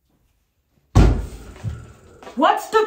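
A door bursts open with a thud.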